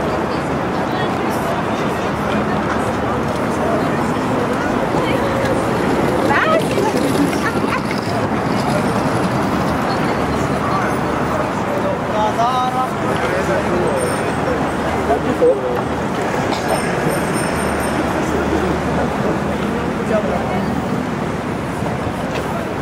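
Footsteps tap on a wooden walkway.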